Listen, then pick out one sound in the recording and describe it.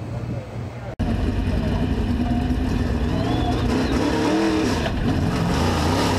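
A race car engine roars loudly from inside the car.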